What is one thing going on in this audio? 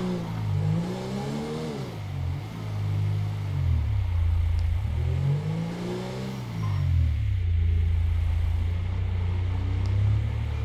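A car engine revs up and eases off as the car drives.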